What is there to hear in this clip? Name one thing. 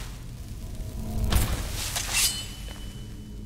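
A heavy wooden lid scrapes and thuds open.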